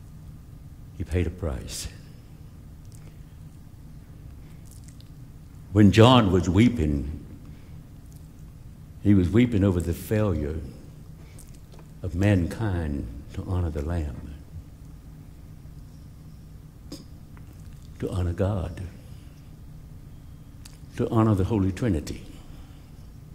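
A middle-aged man speaks with feeling through a microphone, in short bursts with pauses, in a large echoing room.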